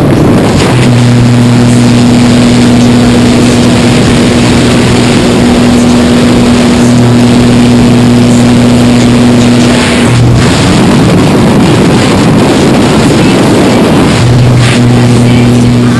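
Wind roars loudly through an open aircraft door.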